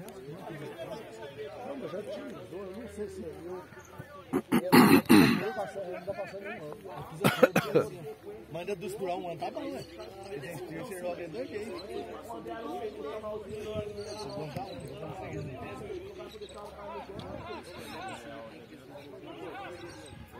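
Men call out and shout to each other across an open field.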